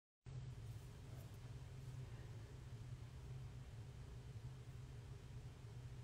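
A woman speaks calmly and close to the microphone.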